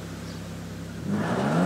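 A car engine suddenly revs up loudly.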